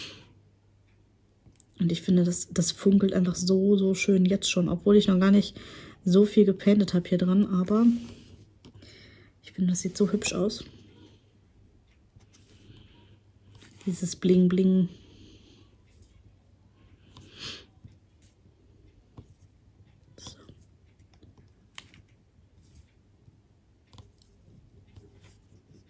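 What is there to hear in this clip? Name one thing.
A pen taps lightly and clicks as small beads are pressed into place.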